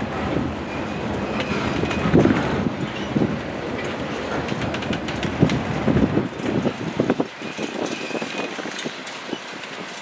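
Steel wheels squeal faintly against the rails.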